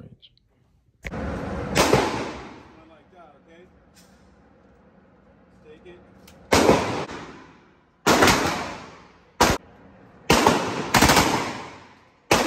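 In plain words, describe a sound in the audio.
Gunshots bang loudly and echo through a large hall.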